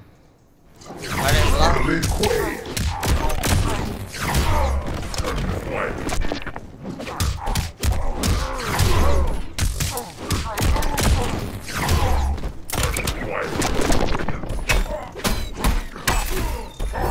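Punches and kicks land with heavy thuds and crashes.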